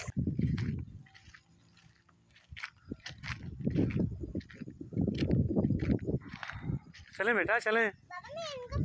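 Small children's footsteps rustle through grass.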